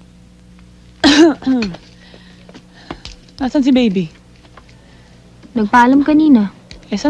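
A woman speaks nearby with emotion, in short bursts.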